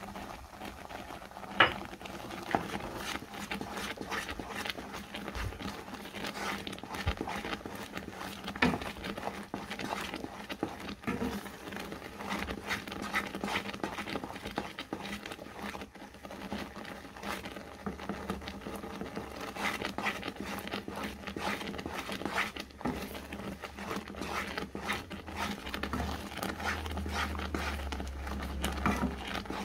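Thick sauce bubbles and sizzles in a pan.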